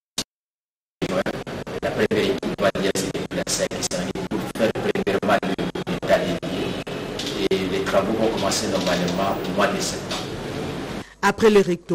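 A man speaks steadily and formally, close to a microphone.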